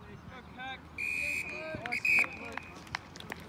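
A referee's whistle blows sharply, twice.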